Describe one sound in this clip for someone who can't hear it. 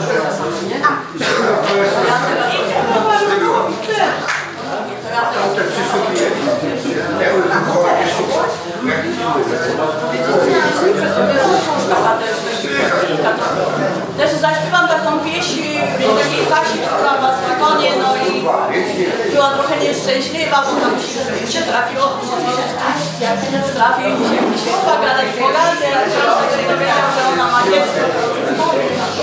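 Several women sing a folk song together close by.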